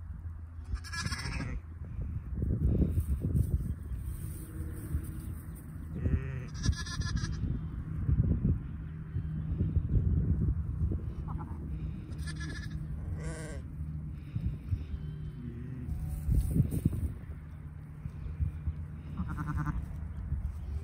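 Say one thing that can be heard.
Young lambs bleat close by in high, wavering cries.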